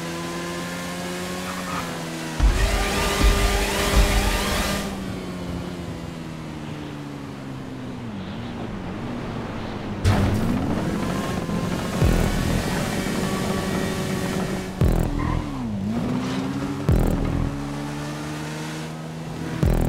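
A motorcycle engine hums steadily and its pitch rises and falls as it speeds up and slows down.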